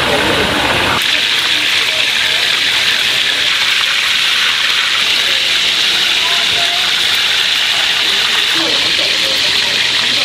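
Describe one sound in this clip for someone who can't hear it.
Oil sizzles and crackles loudly in a deep frying pan.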